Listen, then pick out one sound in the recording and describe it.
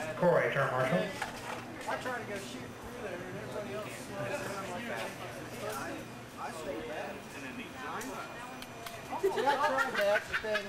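Men talk and call out nearby in a large echoing room.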